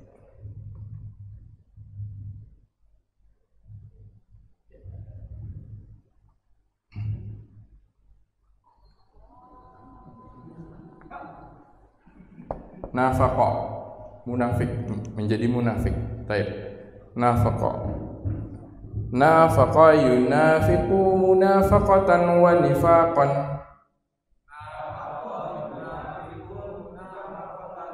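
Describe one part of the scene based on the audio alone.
A man speaks calmly into a headset microphone, with pauses.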